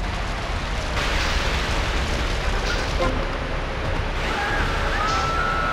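A water hose sprays with a hissing rush.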